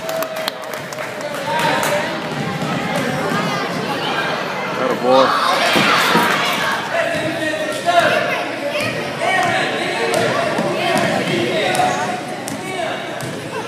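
A crowd of children and adults shouts and cheers in a large echoing hall.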